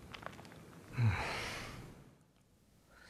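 Glass cracks sharply under a heavy blow.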